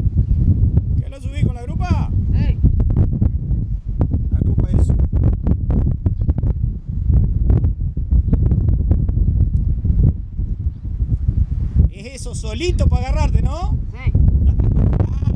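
A man speaks nearby, partly drowned by wind.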